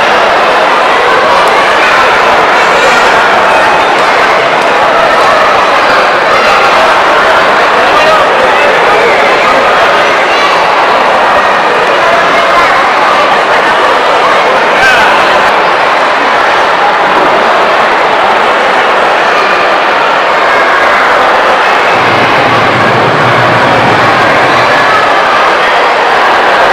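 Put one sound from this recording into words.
A large crowd chatters in an echoing hall.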